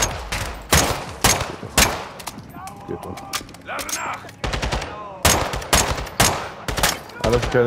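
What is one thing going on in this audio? Gunshots crack repeatedly and echo through a large room.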